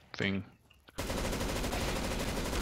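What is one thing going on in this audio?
A machine gun fires in a rapid, loud burst.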